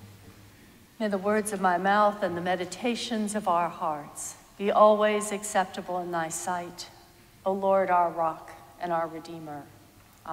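A woman speaks in a sing-song voice into a microphone, echoing in a large hall.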